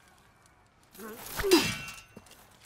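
Swords clash with a sharp metallic ring.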